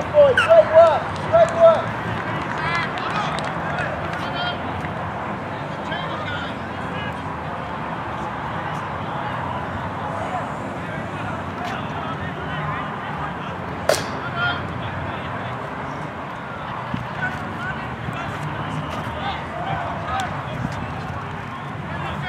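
Men shout and call to each other at a distance, outdoors on an open field.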